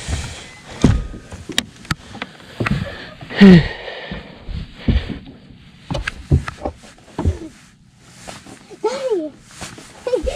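Hollow knocks and thumps sound on a boat seat and deck.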